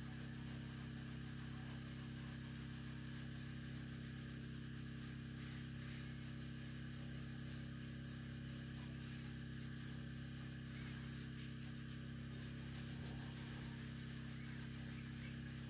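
A hand rubs sandpaper against a metal surface in short rasping strokes.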